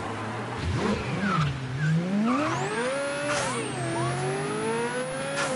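A car engine revs up and accelerates away.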